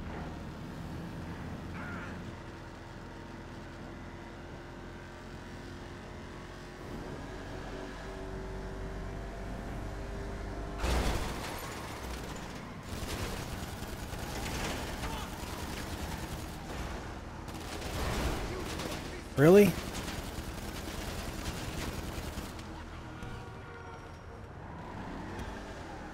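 A car engine hums steadily as it drives along.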